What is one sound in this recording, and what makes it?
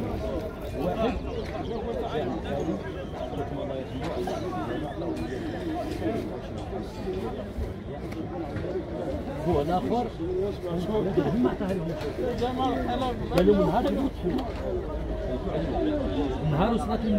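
A crowd of men chatter and call out nearby outdoors.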